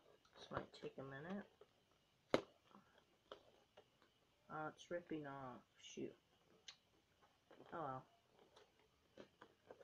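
Plastic packaging crinkles and clicks in hands.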